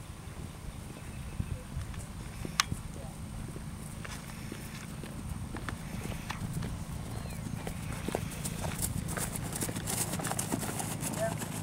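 A horse's hooves thud softly on grass at a steady trot.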